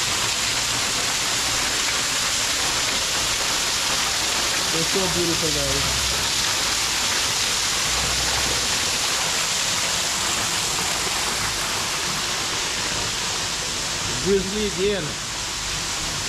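Water splashes steadily down a rock waterfall.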